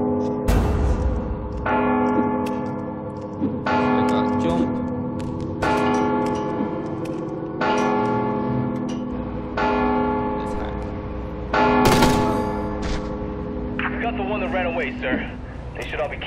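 Deep, ringing musical chords play in a slow repeating pattern.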